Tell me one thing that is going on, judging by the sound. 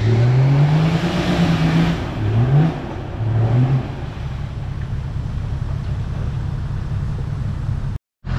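Tyres churn and spin through mud.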